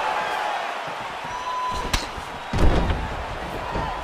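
A fighter falls to the mat with a thud.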